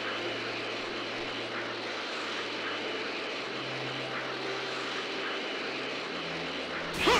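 Characters in a game fly with a steady whooshing, roaring rush of energy.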